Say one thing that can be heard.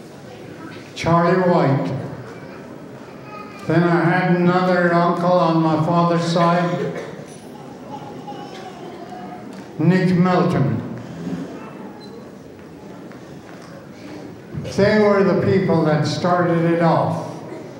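A man sings loudly into a microphone in bursts, heard through loudspeakers in a large hall.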